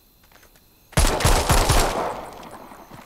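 A gun fires several shots in quick succession, echoing outdoors.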